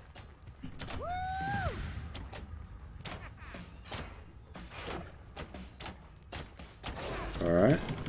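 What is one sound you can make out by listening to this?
Blows and magic effects clash in a fight.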